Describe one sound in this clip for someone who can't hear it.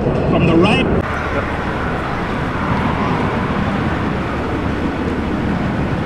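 A jet engine rumbles steadily on the ground nearby.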